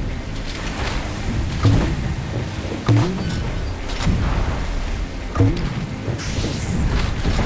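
Water splashes and sprays against a boat.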